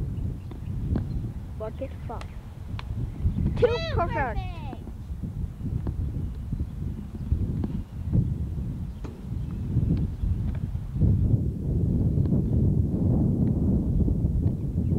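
A ball bounces on pavement with sharp taps.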